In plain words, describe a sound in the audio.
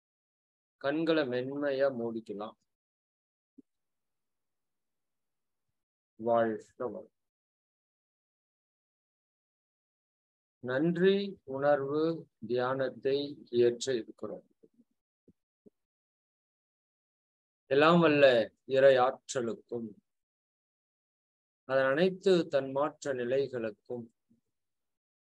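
A man speaks slowly and calmly, close to a microphone, with long pauses.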